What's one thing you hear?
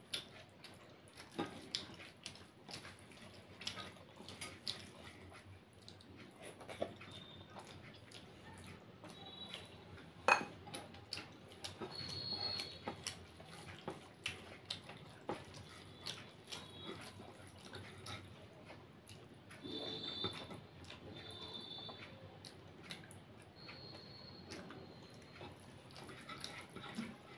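Fingers squish and mix rice on a plate.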